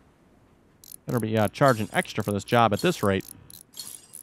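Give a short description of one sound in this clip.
A power wrench whirs briefly.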